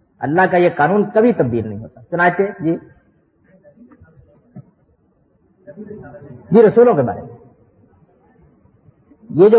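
An elderly man speaks calmly and close by, in short phrases with pauses.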